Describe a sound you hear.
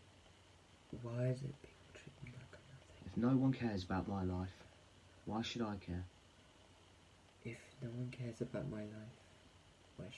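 A man speaks softly into a microphone.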